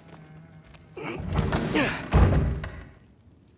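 A heavy wooden door is pushed open with a loud rumble.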